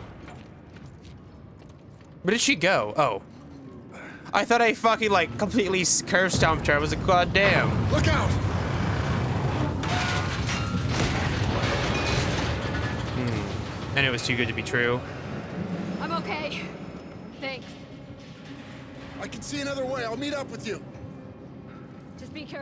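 Heavy footsteps clang on a metal walkway.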